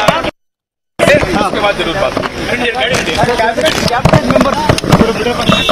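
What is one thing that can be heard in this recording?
A man speaks into microphones close up, amid a crowd.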